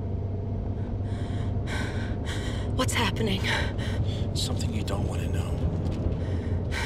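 A young woman speaks tensely close by.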